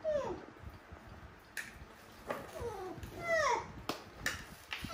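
A young monkey squeaks in high, gliding cries.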